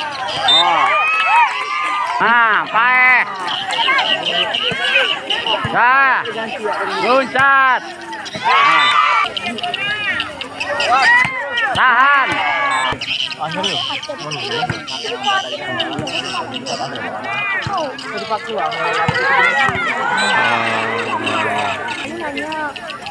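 A large outdoor crowd cheers and shouts excitedly.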